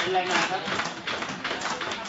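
A middle-aged man claps his hands.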